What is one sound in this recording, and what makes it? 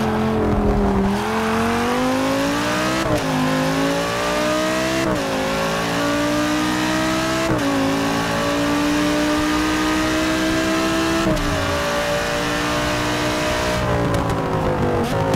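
A racing car engine roars loudly, rising in pitch through each gear and dropping sharply at every gear change.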